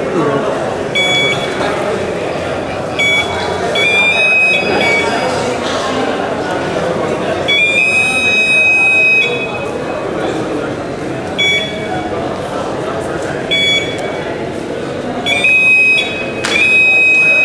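A walk-through metal detector beeps in short, repeated bursts as people pass through.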